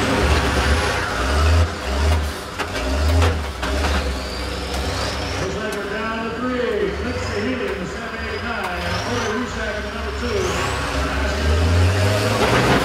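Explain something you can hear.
Bus engines rumble and roar.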